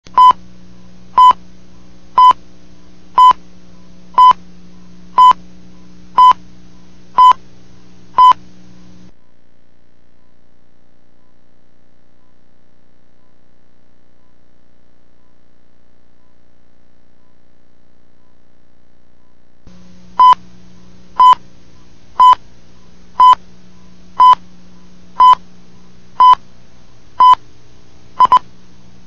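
A short, high electronic beep sounds once every second.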